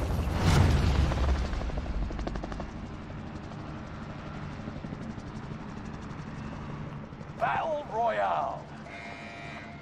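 Helicopter rotors thump and whir close by.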